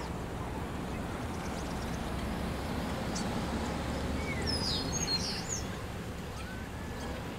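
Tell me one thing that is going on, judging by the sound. A pickup truck drives past at a distance.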